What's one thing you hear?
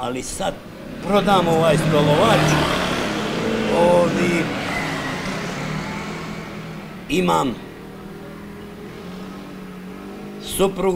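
An elderly man talks with animation close by, outdoors.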